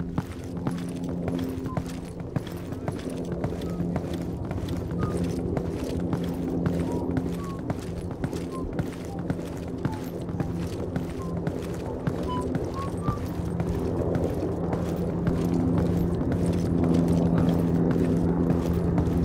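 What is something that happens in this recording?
Footsteps walk steadily over cobblestones.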